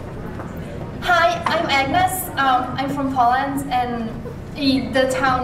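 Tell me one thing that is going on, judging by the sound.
A young woman speaks brightly into a microphone, with a slight echo in the room.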